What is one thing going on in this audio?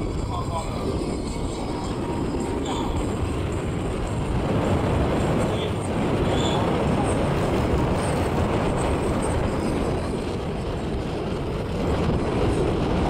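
A jet engine roars loudly overhead with a deep, steady rumble.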